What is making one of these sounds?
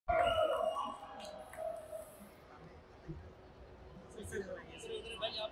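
A large crowd cheers and shouts nearby.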